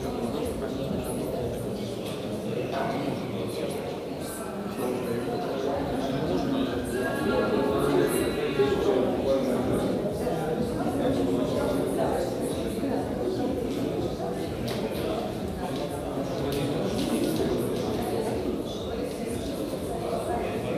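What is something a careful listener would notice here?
A crowd of men and women chatter at close range in a large echoing hall.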